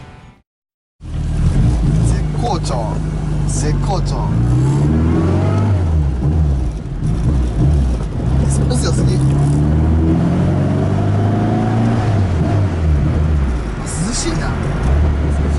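A car engine hums and revs while driving.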